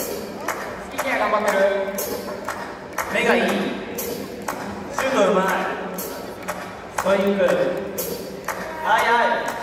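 A group of young men chants loudly in unison in an open stadium.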